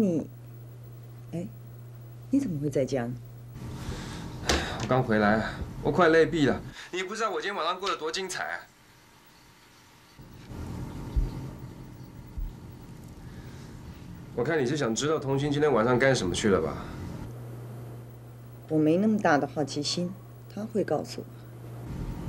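A woman speaks calmly over a phone, close by.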